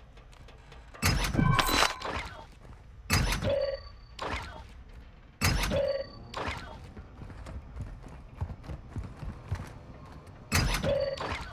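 A metal locker door clanks open.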